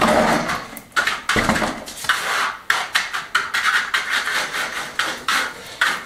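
A trowel scrapes wet mortar on a floor.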